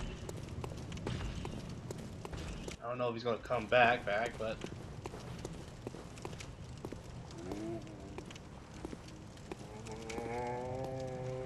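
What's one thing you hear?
Footsteps run quickly over stone paving.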